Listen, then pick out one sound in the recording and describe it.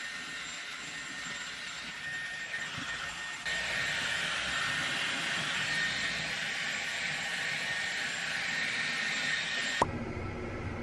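A hair dryer blows with a steady whoosh.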